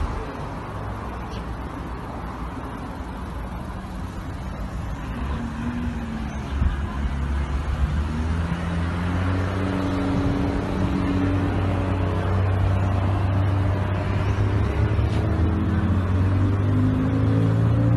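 Wind blows against the microphone outdoors.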